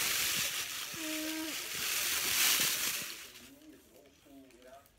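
A young child babbles softly.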